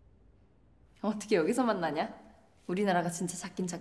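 A young woman speaks playfully and brightly, close by.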